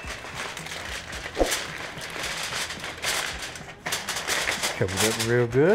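Aluminium foil crinkles and rustles.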